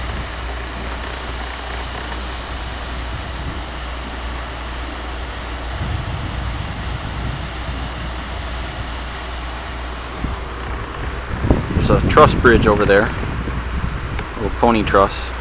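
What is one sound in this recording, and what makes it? Water flows and splashes steadily over rocks outdoors.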